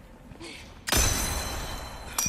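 A gunshot bangs loudly.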